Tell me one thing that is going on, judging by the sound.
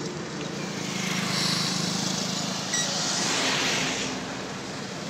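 A car drives by close.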